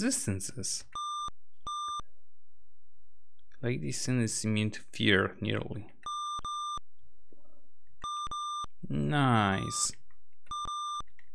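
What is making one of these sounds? A computer game beeps in short, shrill bursts.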